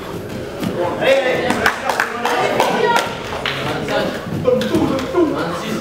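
Bare feet thump on a padded mat.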